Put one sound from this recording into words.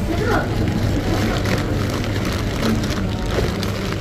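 Plastic snack packets crinkle as a hand pulls them from a shelf.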